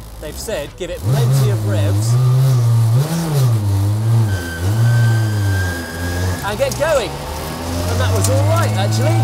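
A race car engine revs hard and loud, rising and falling.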